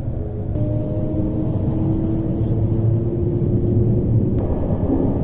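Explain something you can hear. A train's electric motor whines and rises in pitch as the train pulls away.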